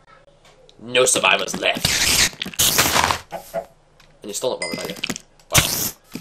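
A spider hisses and chitters up close.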